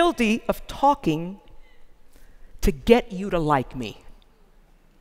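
An elderly woman speaks with animation through a microphone in a large hall.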